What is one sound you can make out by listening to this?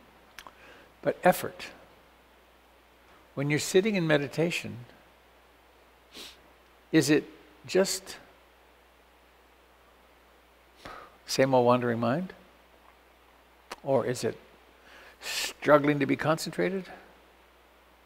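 An elderly man speaks calmly in short phrases with pauses, close to a microphone, as if on an online call.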